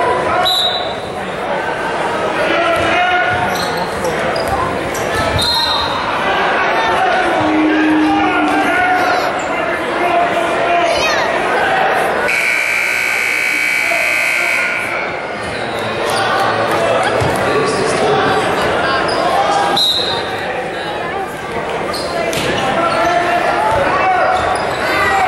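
A crowd in a large echoing gym cheers and chatters throughout.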